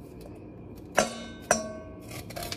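A knife strikes a metal bowl with a bright ringing clang.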